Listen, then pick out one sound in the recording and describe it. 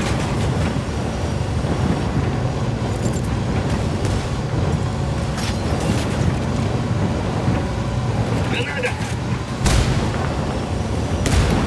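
Heavy wheels crunch over rough gravel.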